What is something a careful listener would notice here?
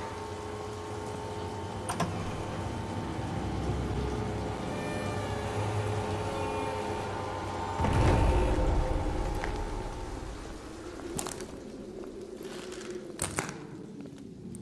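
Heavy boots thud on a hard floor as a soldier walks ahead.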